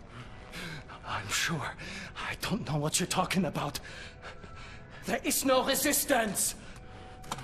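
A hurt man groans and cries out in pain.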